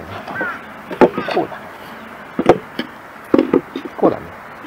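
Wooden boxes knock against each other as they are set down.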